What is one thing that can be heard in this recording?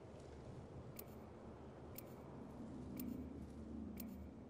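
A countdown timer beeps sharply once a second.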